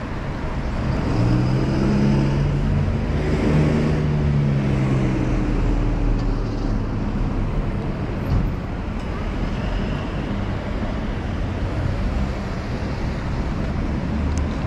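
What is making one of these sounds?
Car engines hum and tyres roll past on a busy street.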